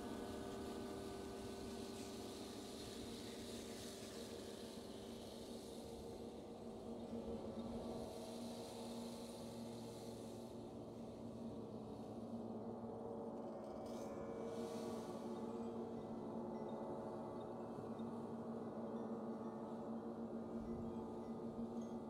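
A frame drum is beaten with a soft, steady rhythm outdoors.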